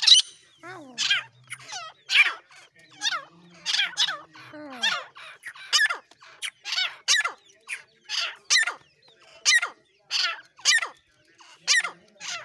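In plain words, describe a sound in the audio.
A bird calls again and again with sharp, high, falling chirps close by.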